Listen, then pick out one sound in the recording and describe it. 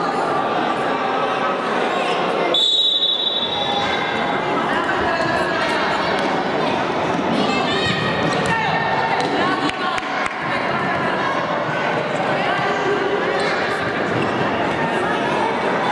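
Children shout and call out across the court.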